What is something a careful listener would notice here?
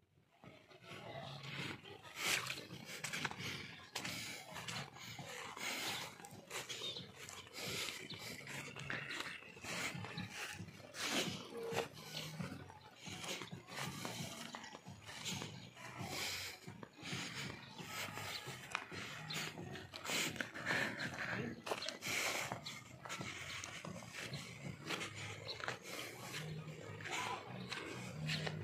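Footsteps swish through grass and crunch on gravel.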